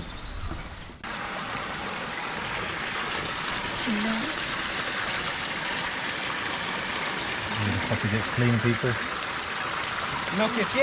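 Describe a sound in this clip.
Water pours steadily into a tank.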